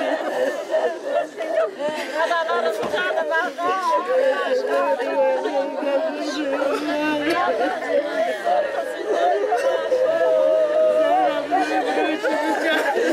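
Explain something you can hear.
Several women wail and sob loudly, close by.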